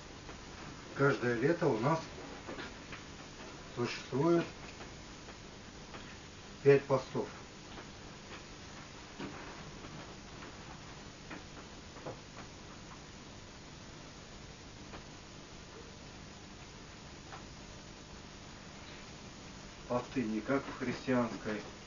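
A man speaks calmly, with long pauses.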